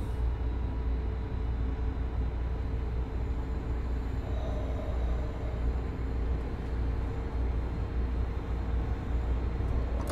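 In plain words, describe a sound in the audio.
A train rumbles steadily along the tracks with a low hum.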